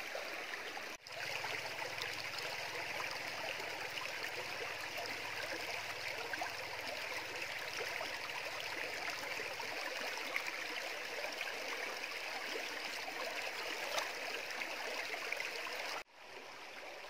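Water trickles close by over stones in a shallow stream.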